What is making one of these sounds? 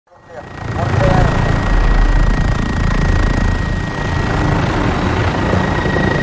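A helicopter's rotor thrums loudly close by.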